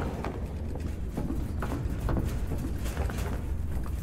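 Light footsteps patter across a hard floor.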